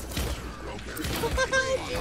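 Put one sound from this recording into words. A weapon fires rapid shots.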